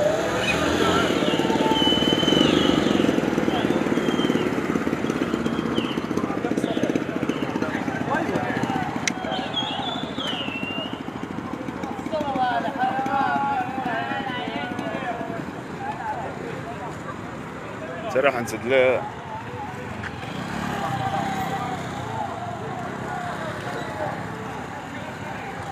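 A crowd shouts outdoors.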